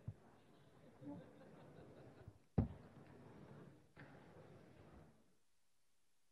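A man speaks briefly into a microphone in a large echoing hall.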